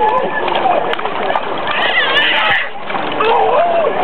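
Water splashes as a baby is dipped in and out.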